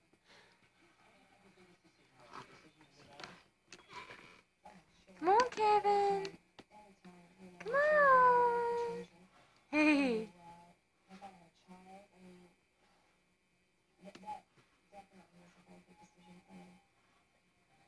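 A woman talks playfully to a baby in a high, sing-song voice close by.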